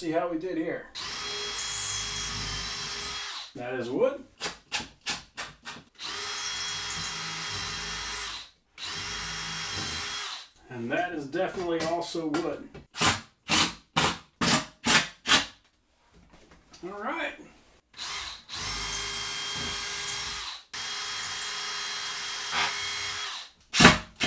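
A cordless drill whirs steadily as it bores into a wall.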